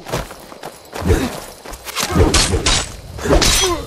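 Flames burst and roar in loud whooshes.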